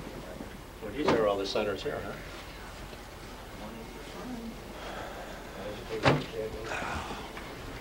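Several men talk in a room.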